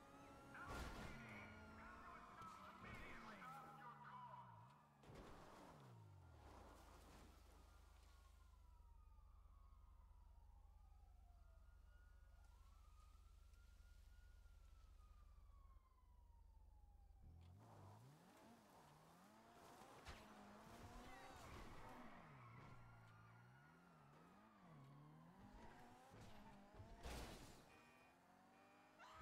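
A car engine revs and roars up and down.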